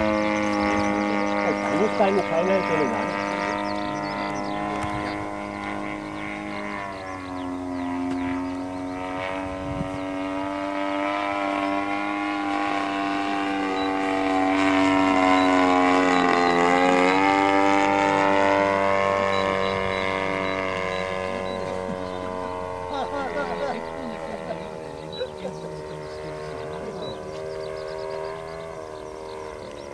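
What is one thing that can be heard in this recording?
A model airplane engine whines steadily overhead, rising and falling in pitch as it passes.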